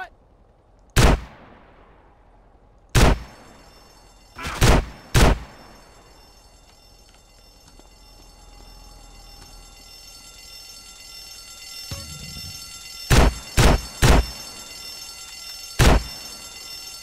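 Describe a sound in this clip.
Loud gunshots fire in short bursts.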